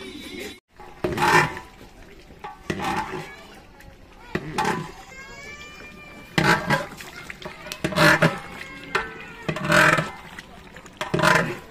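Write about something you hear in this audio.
A metal ladle scrapes and stirs inside a large cooking pot in regular strokes.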